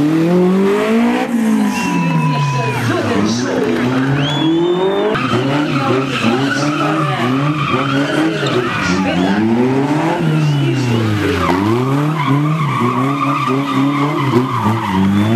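A rally car engine revs hard, rising and falling as the car turns.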